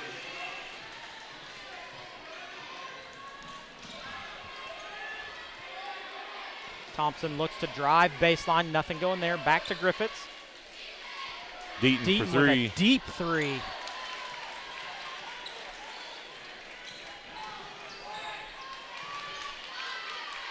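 A large crowd murmurs in an echoing gym.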